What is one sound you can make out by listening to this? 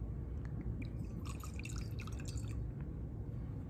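Water trickles from a small glass bottle into a metal cup.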